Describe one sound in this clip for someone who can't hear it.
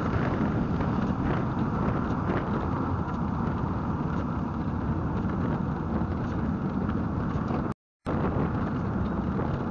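A car engine drones steadily as it drives along a road.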